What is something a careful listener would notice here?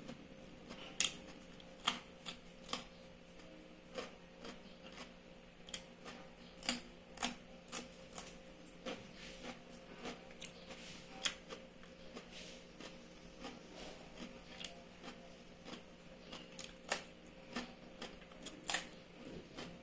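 Crisp food crunches in a woman's mouth as she bites.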